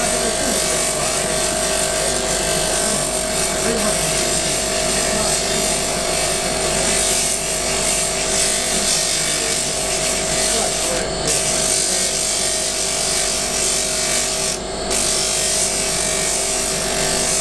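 A bench polishing machine hums steadily as it spins.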